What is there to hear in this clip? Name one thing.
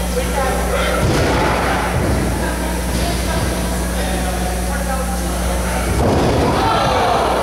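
Wrestlers thud heavily onto a ring mat, echoing in a large hall.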